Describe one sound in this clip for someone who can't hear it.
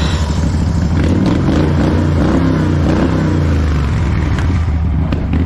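A small lawn tractor engine revs up as the tractor pulls away.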